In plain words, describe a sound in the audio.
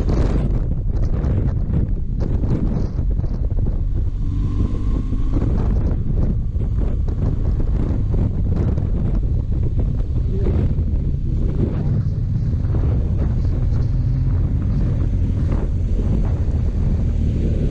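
Wind rumbles loudly across the rider's helmet.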